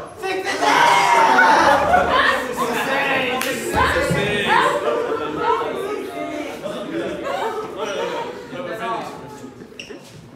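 Teenage boys laugh loudly.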